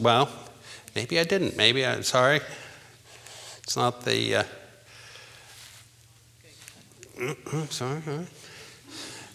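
An older man speaks calmly through a microphone in a large echoing hall.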